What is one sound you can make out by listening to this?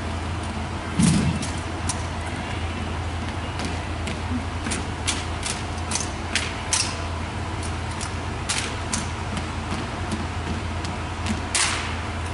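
Rifles slap and clack sharply in hands, echoing in a large hall.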